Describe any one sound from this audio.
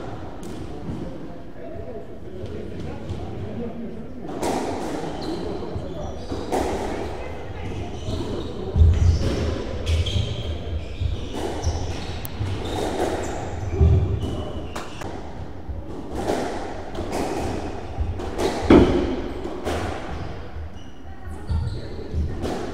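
Racquets strike a squash ball with sharp pops.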